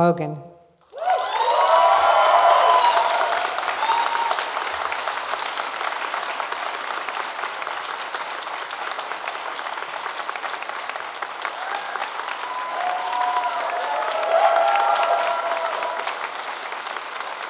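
An audience applauds and cheers loudly.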